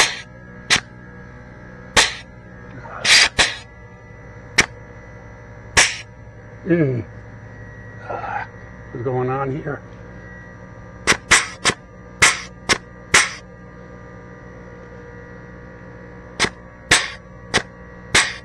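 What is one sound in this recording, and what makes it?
A grease gun clicks sharply as it is pumped, again and again.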